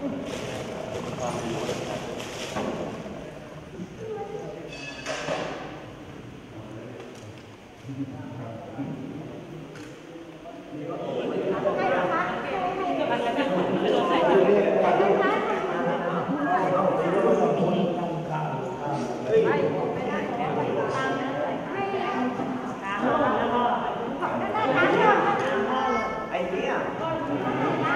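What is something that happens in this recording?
A group of people talk and murmur nearby in an echoing room.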